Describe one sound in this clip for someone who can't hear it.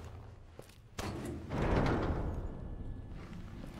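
A heavy metal gate creaks open.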